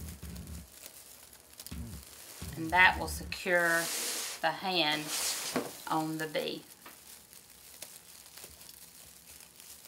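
Decorative mesh rustles and crinkles as hands work it.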